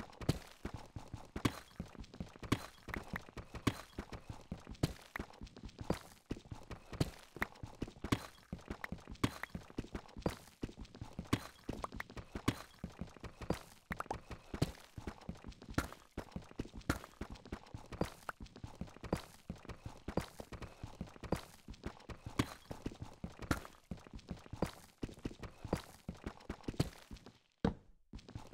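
A pickaxe chips rapidly at stone, with quick repeated knocks.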